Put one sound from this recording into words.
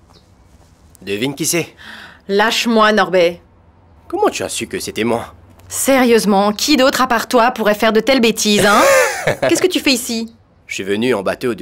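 A young woman speaks close by, calmly then with feeling.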